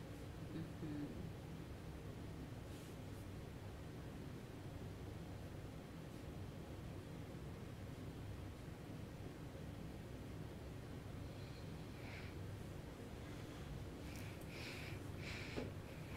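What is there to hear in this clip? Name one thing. A man breathes softly in his sleep.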